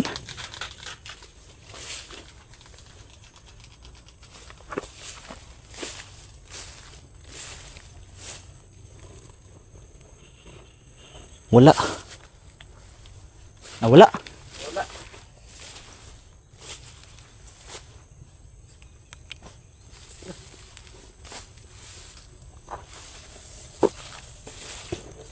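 Footsteps swish and rustle through tall grass and leaves.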